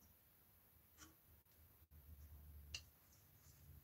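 A wooden tool knocks lightly when set down.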